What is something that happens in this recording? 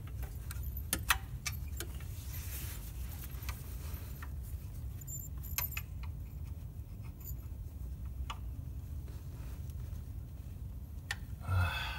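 A metal tool clicks against engine parts.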